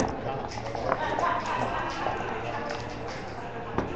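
Dice rattle inside a shaker cup.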